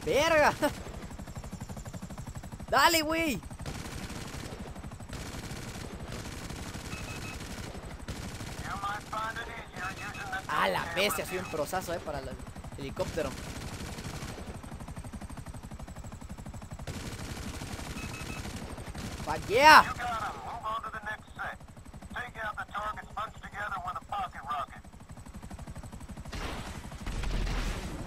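A helicopter's rotor thuds steadily overhead.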